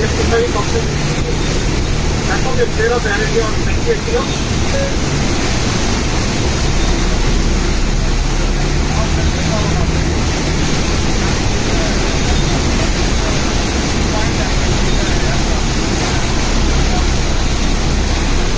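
Heavy rain pours down steadily outdoors, with wind rushing.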